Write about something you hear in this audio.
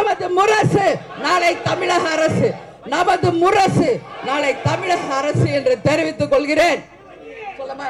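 A woman speaks forcefully into a microphone through loudspeakers.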